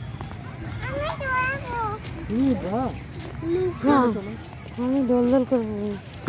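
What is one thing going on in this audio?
A young child babbles and calls out nearby.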